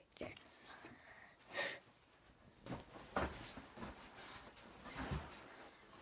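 A young boy flops onto a bean bag chair with a rustle.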